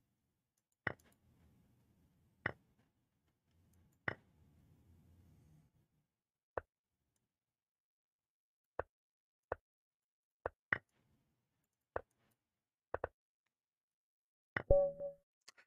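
Short wooden clicks sound as chess moves are made, one after another.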